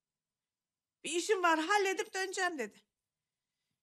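A younger woman speaks softly, close by.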